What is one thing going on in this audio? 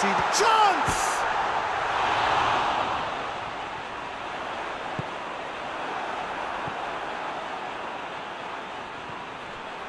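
A stadium crowd roars steadily, loudest at first and then easing off.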